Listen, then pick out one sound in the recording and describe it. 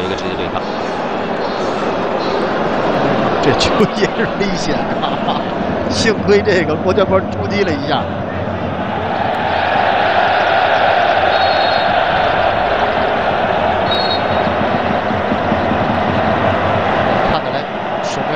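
A large stadium crowd roars steadily, swelling louder partway through.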